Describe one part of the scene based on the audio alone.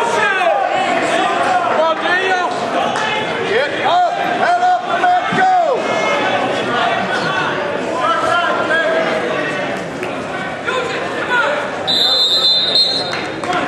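A crowd of spectators shouts encouragement in an echoing gym.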